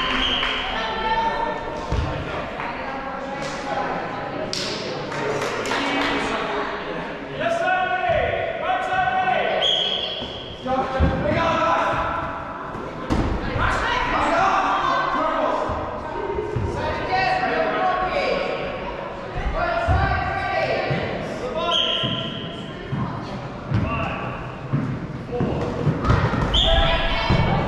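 Young women and men shout and call out to each other in a large echoing hall.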